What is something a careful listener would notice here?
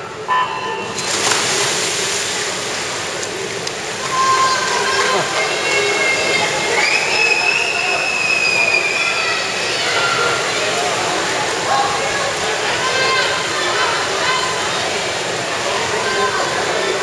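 Swimmers splash through the water doing backstroke in an echoing indoor pool hall.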